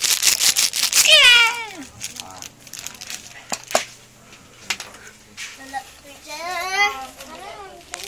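A baby squeals and babbles close by.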